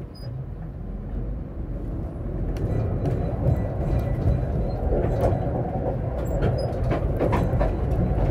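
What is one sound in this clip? A tram starts moving and its motor hums louder as it picks up speed.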